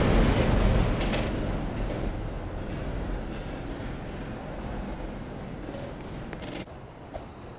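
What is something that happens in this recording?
A train pulls away and fades into the distance.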